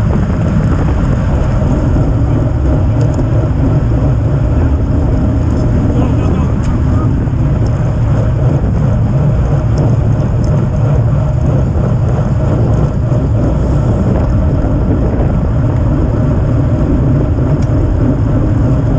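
Bicycle tyres hum on a paved road.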